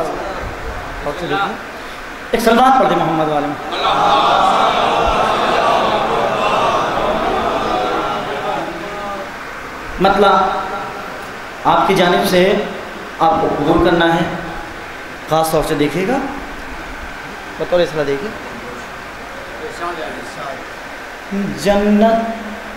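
A young man recites loudly and with feeling through a microphone in an echoing hall.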